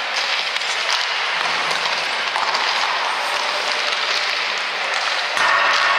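A hockey stick strikes a puck with a sharp clack.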